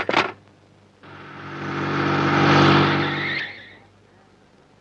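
A car engine rumbles and rises, then fades.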